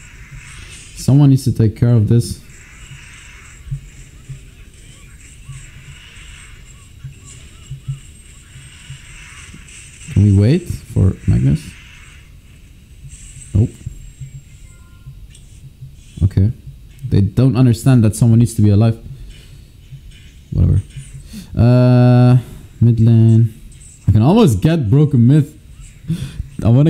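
A young man talks animatedly into a nearby microphone.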